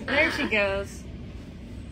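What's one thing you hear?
A young woman laughs softly close by.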